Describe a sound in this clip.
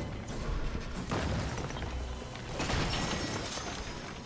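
A pickaxe smashes through wooden objects with cracking thuds.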